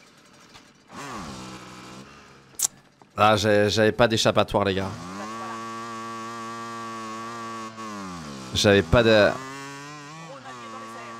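A motorcycle engine idles and revs, rising and falling in pitch.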